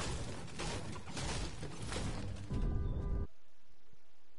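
A pickaxe swings and strikes with dull thuds.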